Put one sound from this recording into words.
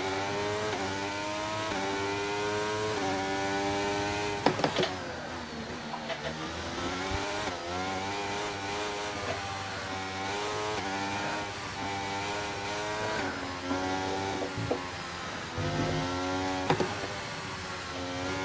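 A racing car engine screams at high revs, rising through the gears and dropping as it brakes.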